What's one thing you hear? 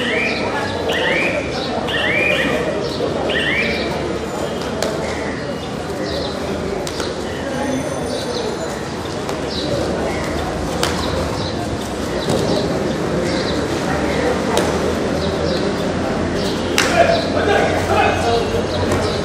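Several young men shout and call to each other in an echoing hall.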